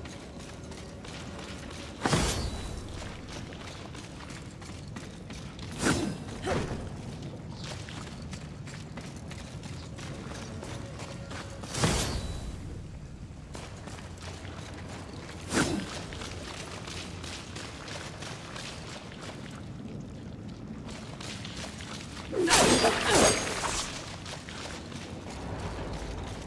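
A game character's footsteps crunch over sandy ground.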